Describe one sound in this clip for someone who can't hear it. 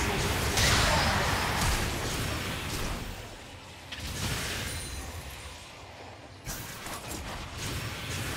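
Game spell effects whoosh and crackle in bursts during a fight.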